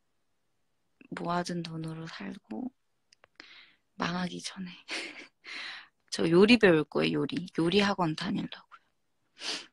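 A young woman talks cheerfully, close to the microphone.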